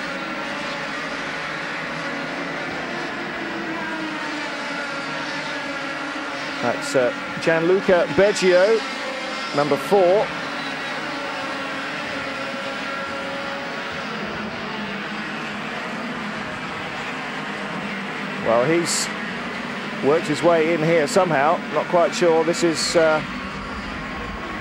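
Kart engines buzz and whine as karts race past.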